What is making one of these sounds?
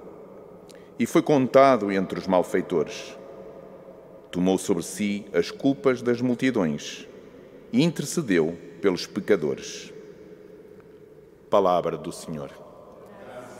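A man reads aloud calmly into a microphone in a large echoing hall.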